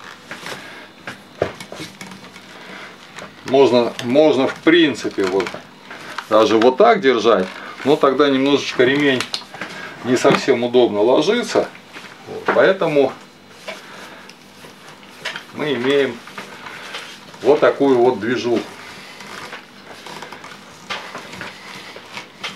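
A leather strap creaks and rustles as it is pulled through a buckle.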